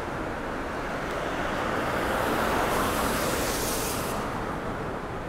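A car drives past close by on a city street.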